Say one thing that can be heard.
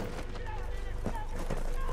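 Footsteps crunch on a dirt ground.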